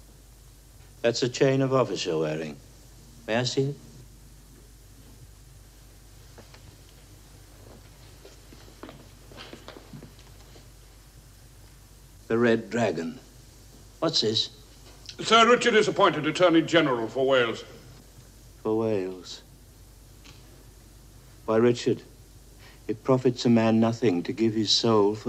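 A middle-aged man speaks intensely, close by, in short bursts.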